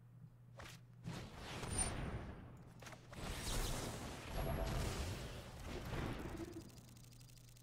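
Magical whooshing game effects swell loudly and then fade.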